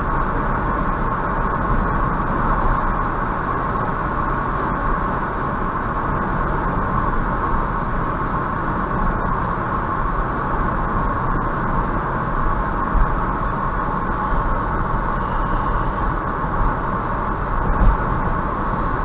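A car drives steadily along a highway with a constant rumble of road noise.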